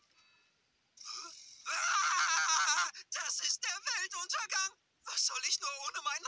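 A man shouts joyfully with animation, close by.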